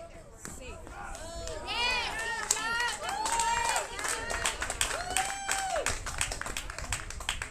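Young players shout and cheer at a distance outdoors.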